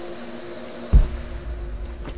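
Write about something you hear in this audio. A heavy thud sounds as a climber drops onto stone.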